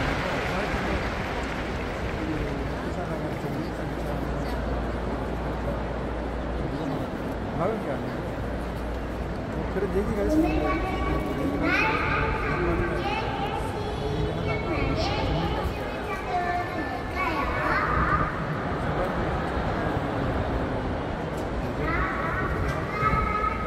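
A large crowd murmurs in a vast open-air stadium.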